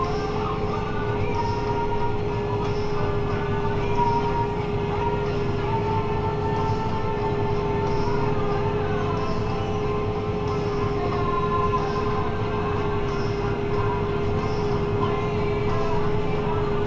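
A tractor engine drones steadily, heard from inside the cab.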